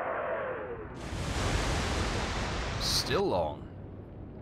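A shell crashes into the sea with a roaring splash.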